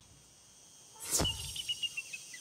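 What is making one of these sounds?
A magical whoosh sweeps through briefly.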